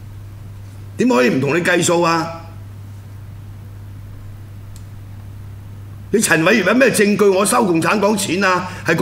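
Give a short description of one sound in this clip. A middle-aged man speaks into a microphone with animation.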